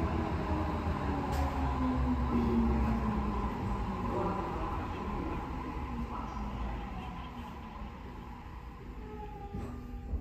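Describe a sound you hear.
A train's motor whines and falls in pitch as the train slows to a stop.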